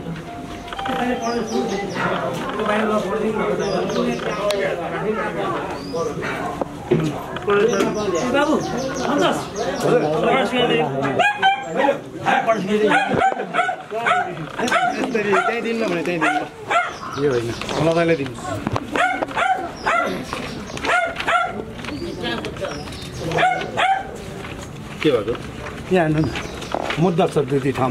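Several men talk over one another close by, with animation.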